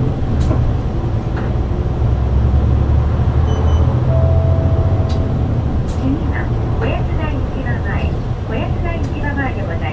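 The bus rattles and creaks as it drives along the road.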